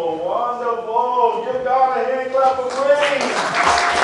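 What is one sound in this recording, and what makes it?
A man sings through a microphone in an echoing hall.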